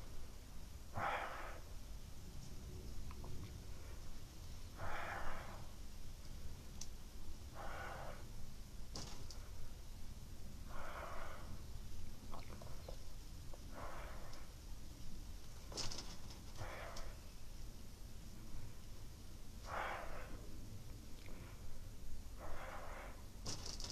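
A person breathes out deeply and slowly, again and again, close by.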